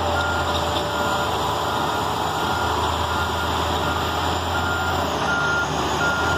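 A reversing alarm beeps at a steady beat.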